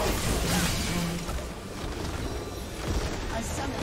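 Spell effects whoosh and crackle in a fight.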